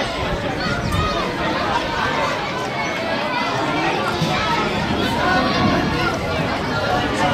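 Children shout to each other while playing football.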